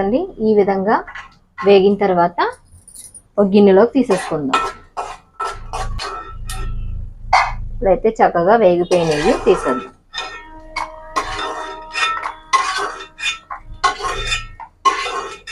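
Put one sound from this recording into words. A metal spoon scrapes and clinks against a metal pan.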